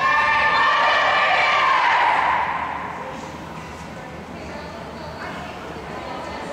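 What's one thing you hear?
Young girls chatter and call out together in a large echoing hall.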